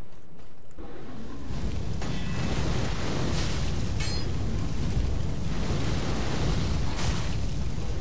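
A fireball roars and bursts.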